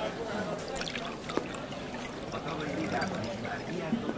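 Liquid pours from a bottle into a glass.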